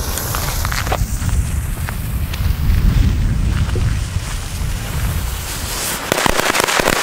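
A firework fuse hisses and sputters.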